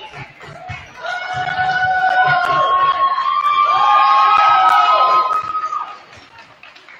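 A crowd of teenagers shouts and cheers in a large echoing hall.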